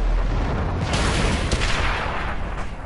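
A shell explodes with a loud, crackling blast nearby.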